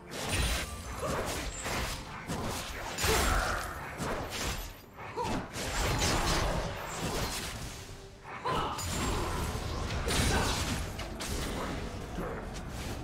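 Spell effects crackle and burst during a fight in a video game.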